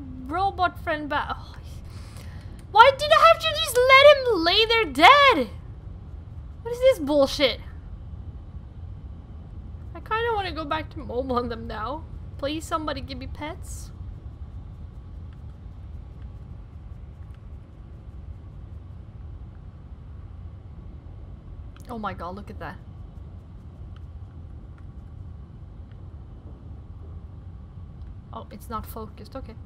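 A young woman talks with animation into a close microphone, in bursts with pauses.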